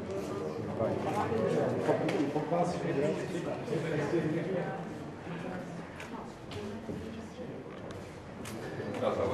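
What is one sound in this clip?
Several adults talk at once in a murmur of voices nearby.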